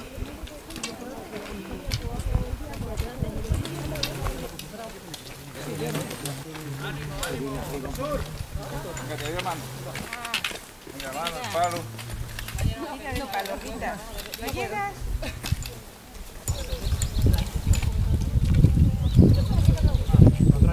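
Footsteps crunch on a gravel track as a group of hikers walks past.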